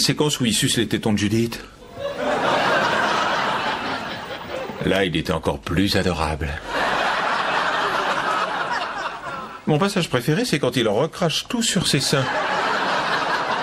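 A man speaks in a relaxed, dry tone.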